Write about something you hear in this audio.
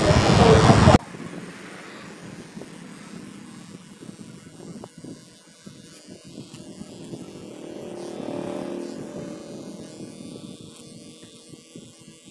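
Electric hair clippers buzz close by.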